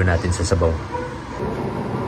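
A fork scrapes inside a plastic tub.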